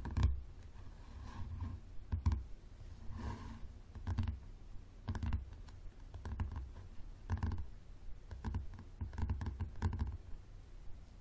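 Fingernails tap rapidly on a hardcover book close by.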